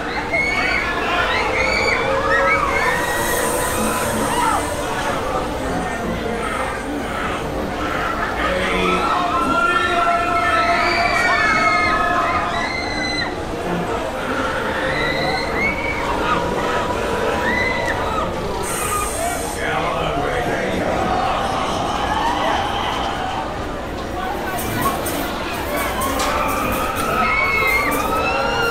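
Riders scream and shriek from the swinging ride.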